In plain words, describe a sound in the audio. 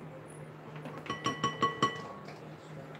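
A spoon taps against a glass bowl.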